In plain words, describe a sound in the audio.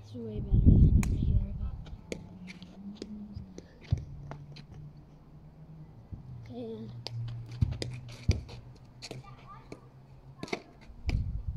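A hurley stick strikes a ball with sharp cracks.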